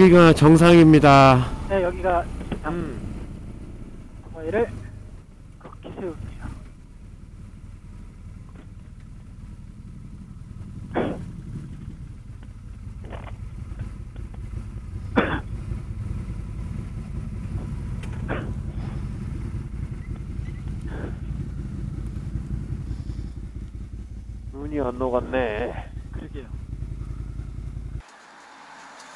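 A motorcycle engine hums low and steady.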